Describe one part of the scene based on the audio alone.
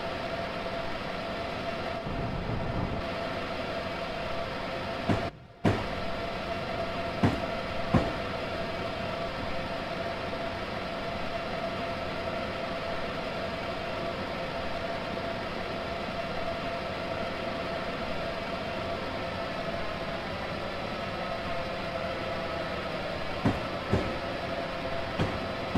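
An electric train engine hums steadily while rolling along.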